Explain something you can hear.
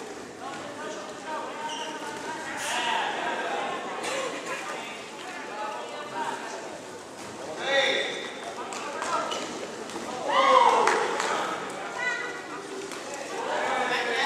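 A crowd of spectators shouts and cheers loudly throughout.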